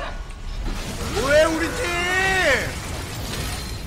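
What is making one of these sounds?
A young man speaks with excitement close to a microphone.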